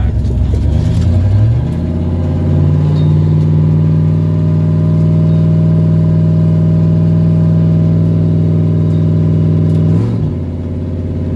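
A car engine rises in pitch as it speeds up, then drops sharply at a gear change.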